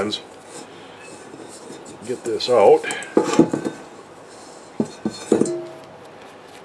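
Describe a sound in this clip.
A metal bowl knocks and scrapes.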